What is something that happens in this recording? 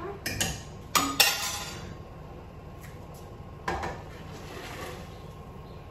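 Metal pots clang on a stove.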